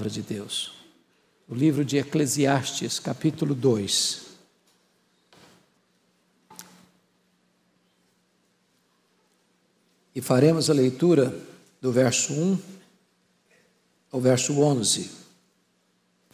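An older man speaks slowly and deliberately through a microphone, with long pauses.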